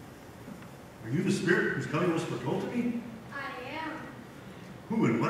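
An elderly man speaks theatrically on a stage, heard from the audience.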